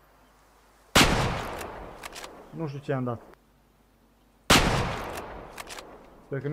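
A rifle shot bangs and echoes away.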